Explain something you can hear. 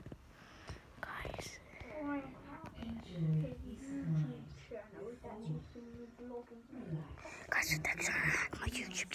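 Boys talk and giggle nearby.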